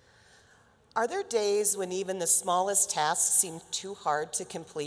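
A middle-aged woman speaks with animation into a microphone, heard over loudspeakers in a large hall.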